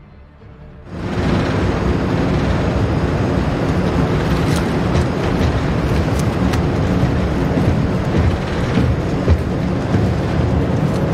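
An aircraft engine roars steadily.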